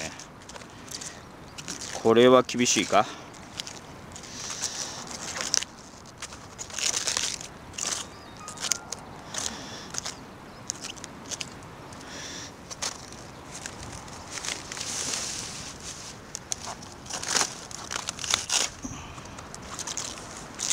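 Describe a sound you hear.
A knife cuts through crisp lettuce stems.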